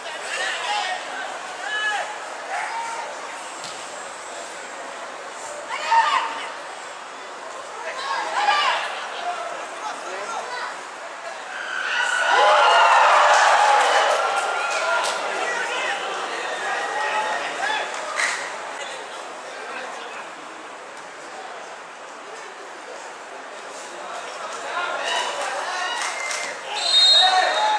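A crowd cheers and shouts in a large open stadium.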